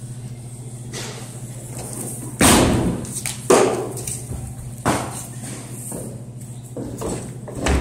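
Footsteps thud on a hollow wooden stage floor.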